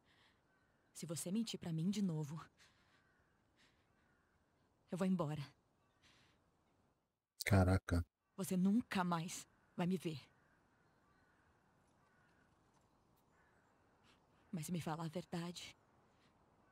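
A young woman speaks softly and emotionally, in short bursts.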